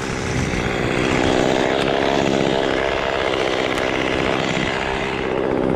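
A chainsaw engine runs loudly and steadily close by.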